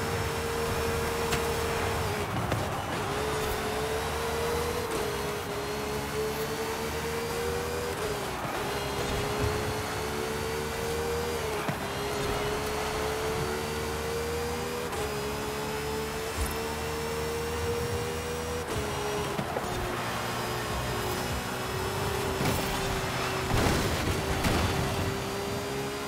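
Another car engine roars close by as it is passed.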